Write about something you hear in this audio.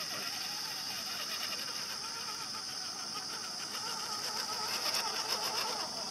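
A small electric motor whines, rising and falling in pitch.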